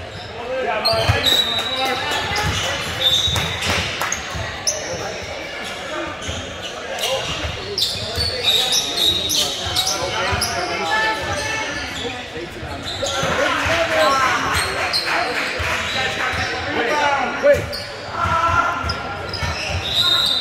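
Sneakers squeak sharply on a gym floor, echoing.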